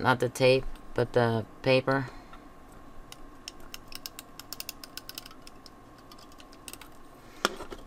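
A tape roller clicks and whirs as it runs along paper.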